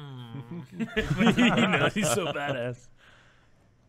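A man cheers loudly.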